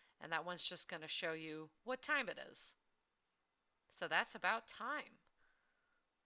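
A woman speaks with animation into a close headset microphone.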